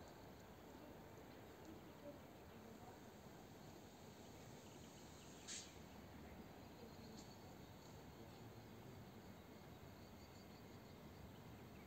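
A train rumbles faintly in the distance as it slowly approaches.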